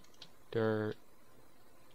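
A young man speaks a short word into a headset microphone.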